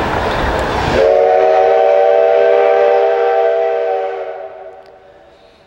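A steam locomotive whistle blows a long chord.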